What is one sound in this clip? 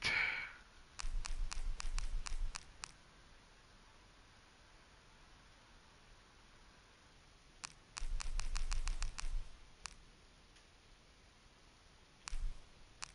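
Short menu clicks tick in quick bursts as selections change.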